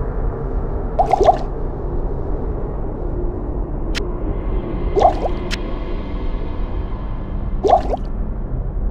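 Small items clink as they are picked up and moved.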